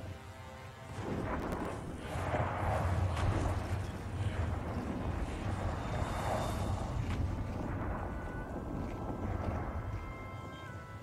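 Ship cannons fire in rapid volleys with deep booms.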